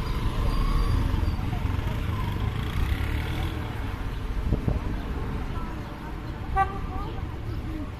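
A motorcycle engine hums as it rides past.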